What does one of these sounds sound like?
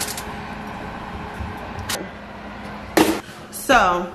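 An oven door swings shut with a thud.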